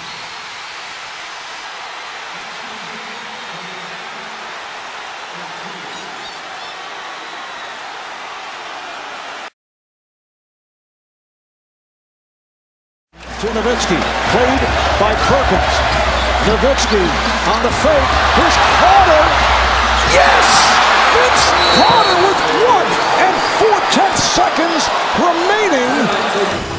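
A large arena crowd roars and cheers.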